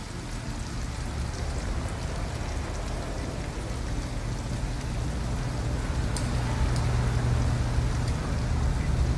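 Steady rain falls on a wet street.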